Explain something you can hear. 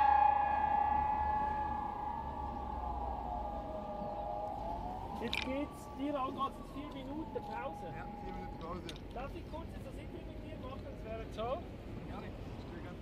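A siren wails loudly nearby, rising and falling, then winds down and fades.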